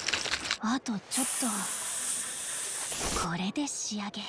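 A can of spray paint hisses in short bursts.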